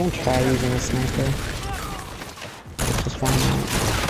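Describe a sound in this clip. Gunshots rattle in quick bursts.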